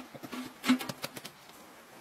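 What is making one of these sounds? Hands pat and press soft dough.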